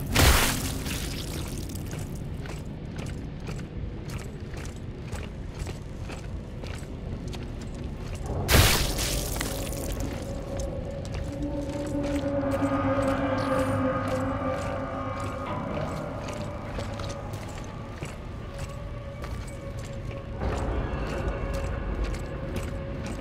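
Heavy boots thud on a hard floor at a steady walking pace.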